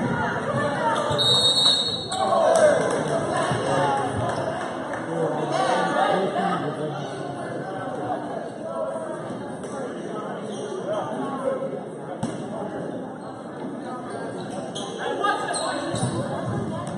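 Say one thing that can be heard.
A crowd of spectators chatters in a large echoing gym.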